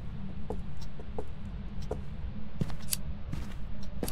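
A lighter clicks as it is flicked alight.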